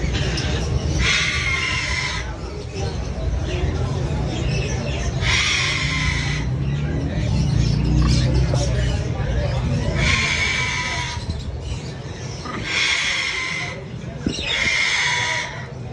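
Young parrot chicks screech in harsh begging bursts close by.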